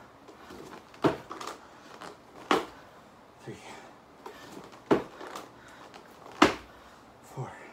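Feet thump on a floor mat in a steady rhythm.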